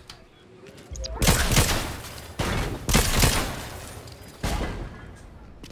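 Video game gunfire rattles in bursts.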